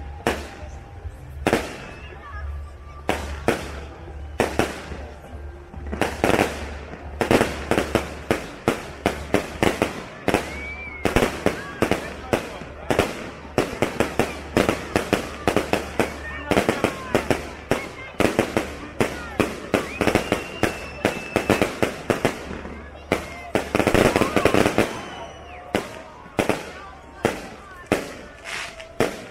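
Fireworks burst with loud, rapid bangs and crackles outdoors.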